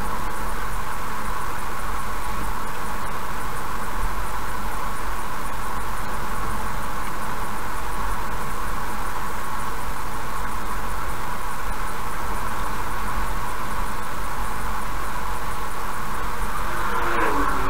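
A car drives steadily along a highway with a constant road hum.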